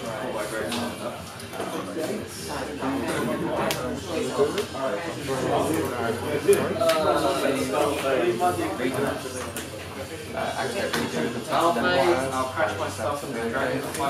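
Playing cards are shuffled and tapped onto a mat.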